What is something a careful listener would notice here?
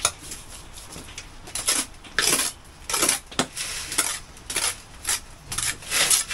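A tool chips and knocks at brick in short, repeated bursts.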